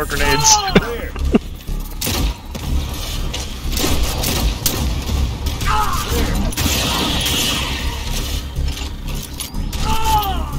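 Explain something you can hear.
Rapid gunfire rattles down an echoing metal corridor.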